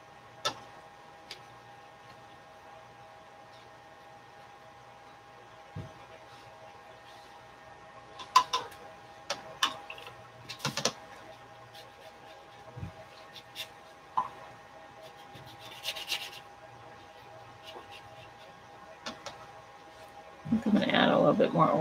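A brush clinks against a paint tray.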